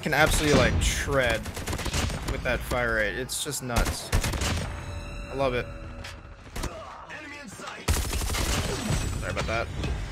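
Gunfire from a video game rattles in quick bursts.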